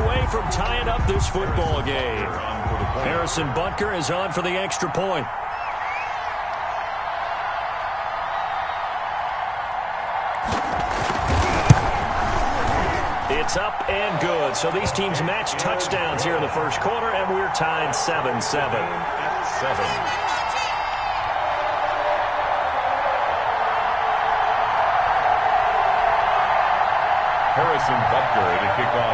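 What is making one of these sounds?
A large crowd roars and cheers steadily.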